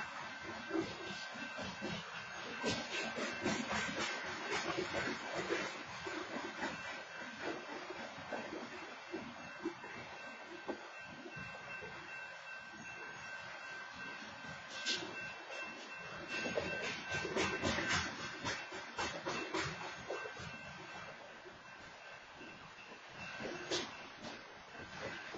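Train wheels clank and squeal on the rails.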